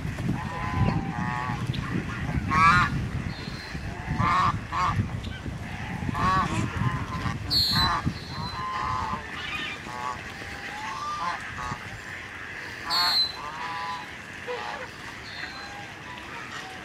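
Geese honk repeatedly near the water.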